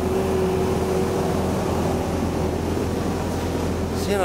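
A bus engine idles with a steady hum nearby.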